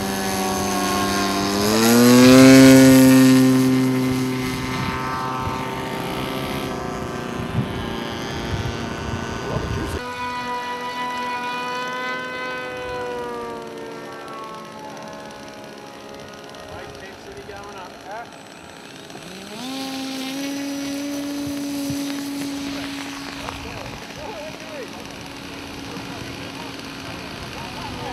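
A small model aircraft engine buzzes loudly outdoors.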